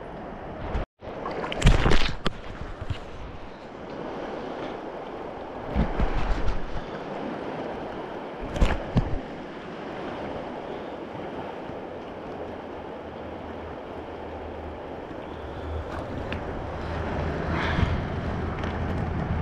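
A fast river rushes and splashes close by.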